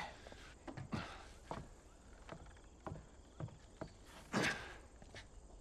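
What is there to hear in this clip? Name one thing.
A man's footsteps thud on a wooden beam.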